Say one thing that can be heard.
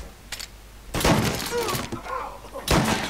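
A shotgun fires a loud blast indoors.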